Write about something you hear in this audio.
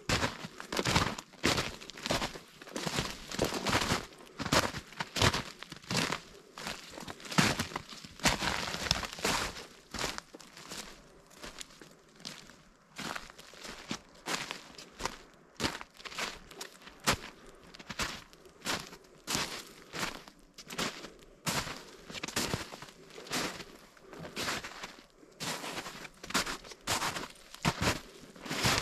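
Footsteps crunch through snow and dry leaves at a steady walking pace.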